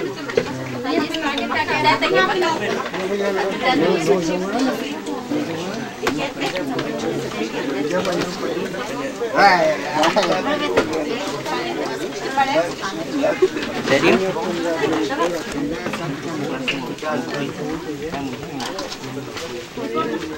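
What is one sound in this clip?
A crowd of men and women chatters at close range outdoors.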